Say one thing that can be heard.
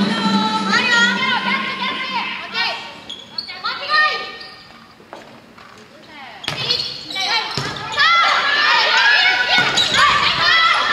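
Sports shoes squeak sharply on the court floor.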